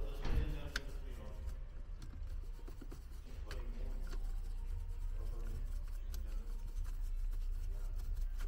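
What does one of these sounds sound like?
A soft brush sweeps over a plastic surface.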